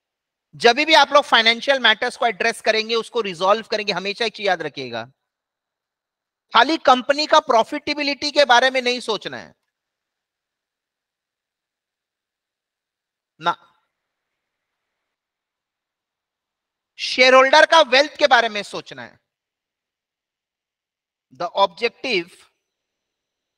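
A man speaks calmly into a microphone, explaining in bursts with pauses.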